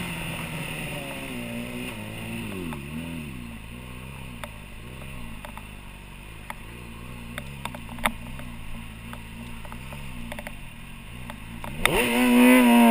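A motorcycle engine idles and revs in a wavering rhythm.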